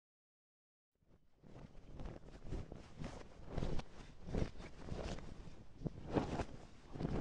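Strong wind gusts outdoors.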